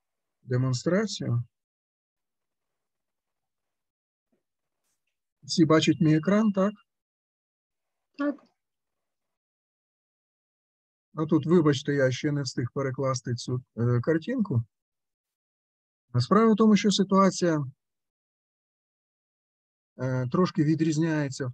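A middle-aged man speaks calmly over an online call, in short bursts with pauses.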